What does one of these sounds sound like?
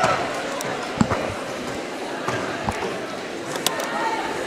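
Skaters' wheels and bodies knock and clack as they bump together.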